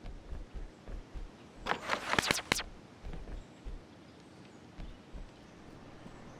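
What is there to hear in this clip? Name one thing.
Soft footsteps thud on a hard floor.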